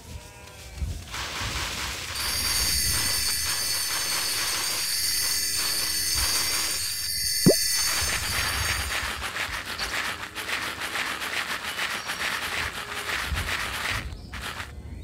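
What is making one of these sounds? Crops rustle and swish as they are harvested in quick strokes.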